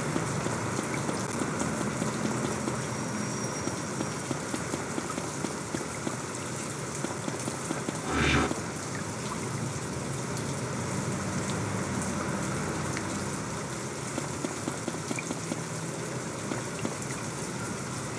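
Footsteps patter on pavement.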